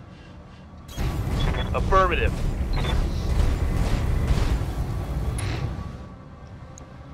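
A giant robot stomps along with heavy, rumbling footsteps.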